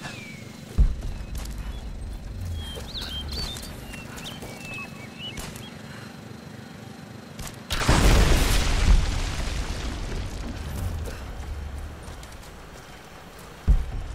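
Footsteps crunch on forest ground.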